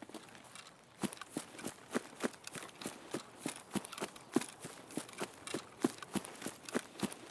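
Quick footsteps swish and thud through tall grass.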